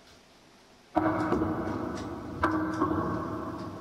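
Electric guitars play loudly in a live band.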